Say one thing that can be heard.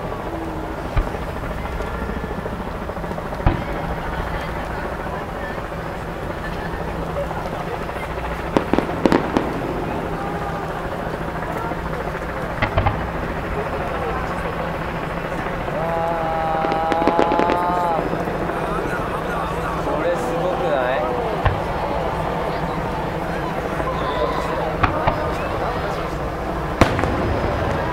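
Fireworks burst with sharp bangs in the open air.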